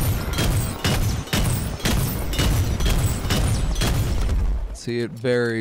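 Rapid gunfire pops and cracks.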